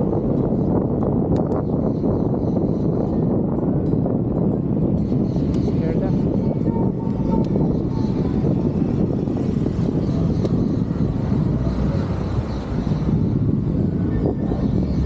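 Bicycle tyres roll over a paved road.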